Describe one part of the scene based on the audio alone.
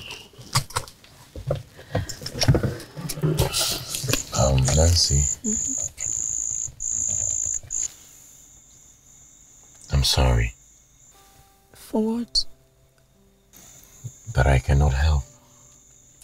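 A man talks quietly and closely.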